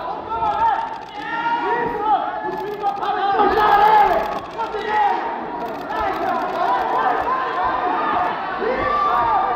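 A crowd shouts and cheers loudly in a large hall.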